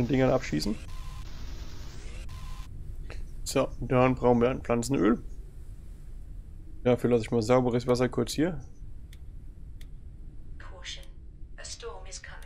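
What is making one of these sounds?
A young man talks casually into a close microphone.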